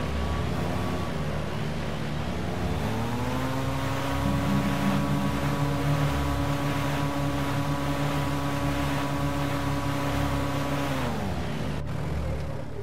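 An airboat engine drones loudly, then winds down.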